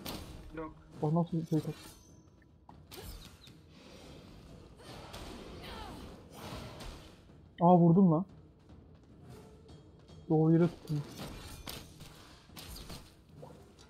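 Sword blows strike in a fight.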